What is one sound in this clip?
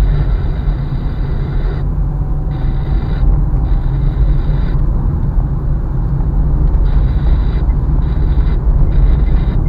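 A car engine rumbles steadily from inside the cabin.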